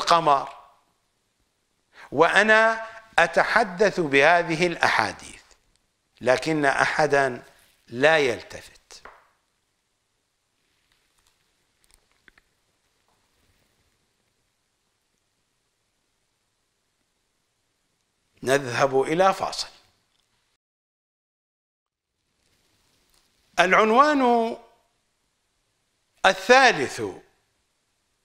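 An older man speaks with animation into a close microphone, pausing between phrases.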